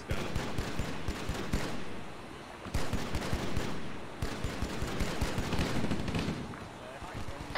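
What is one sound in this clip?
A weapon fires rapid energy shots.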